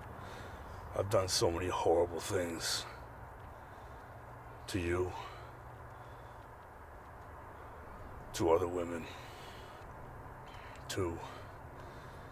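A man speaks in a low, tense voice nearby.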